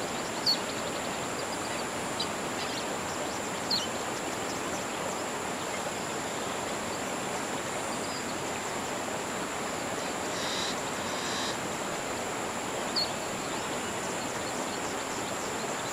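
Water laps softly against a shore.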